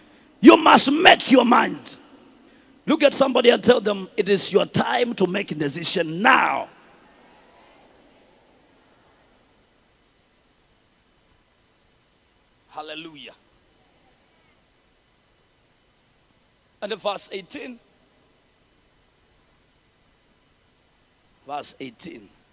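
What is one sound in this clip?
A young man speaks with animation through a microphone in a large echoing hall.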